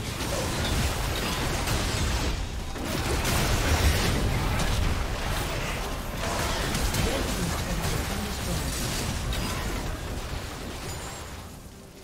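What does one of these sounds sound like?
Magic spells crackle, whoosh and burst in a busy battle.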